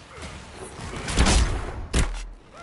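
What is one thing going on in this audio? A fireball bursts with a loud roaring blast.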